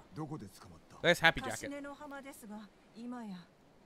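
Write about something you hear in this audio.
An elderly woman answers softly, close by.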